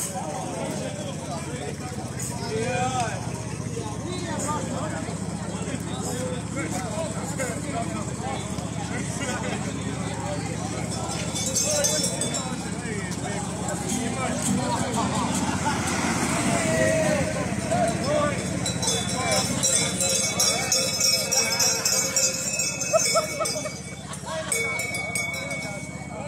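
A crowd of men and women sings along together.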